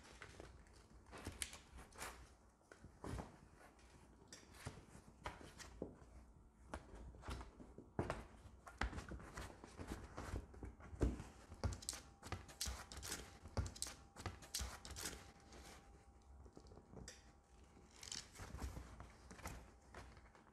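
A dog gnaws and chews noisily on a hard chew.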